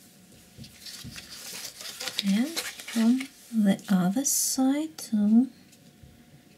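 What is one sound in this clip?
A sheet of paper rustles as it is lifted and turned.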